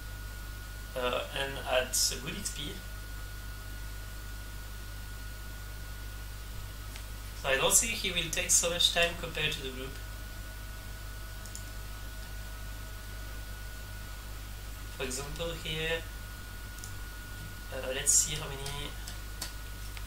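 A young man talks casually into a nearby microphone, in short bursts.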